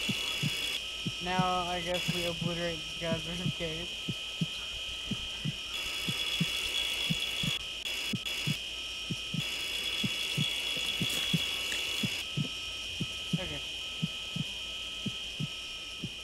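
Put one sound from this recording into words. A heartbeat thumps steadily.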